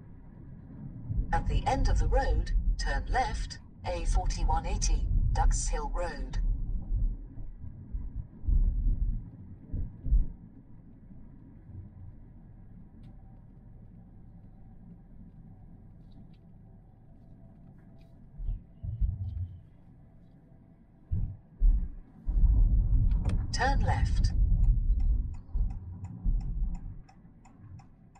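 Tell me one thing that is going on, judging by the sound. A car engine hums low as the car drives along.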